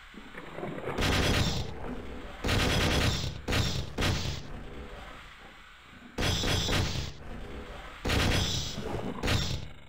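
An energy weapon fires loud buzzing bursts.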